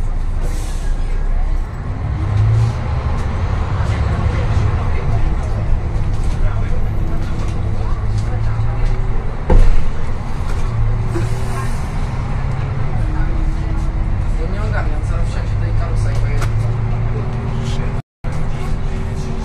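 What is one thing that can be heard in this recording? A bus engine hums low and steady from inside the cabin.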